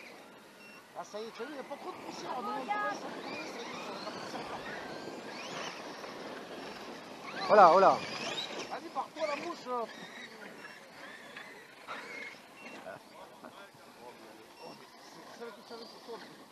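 Small model car motors whine and rev as the cars race around.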